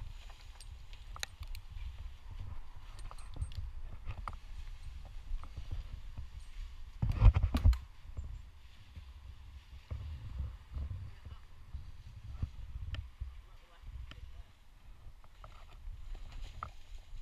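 Climbing clips and rope clink and rattle close by.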